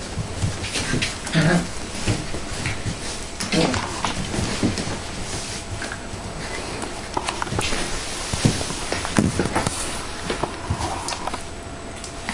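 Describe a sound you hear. Puppies whimper and yelp close by.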